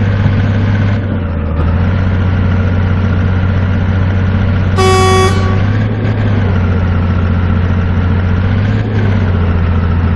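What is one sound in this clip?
A truck's gears shift with a brief dip in the engine's drone.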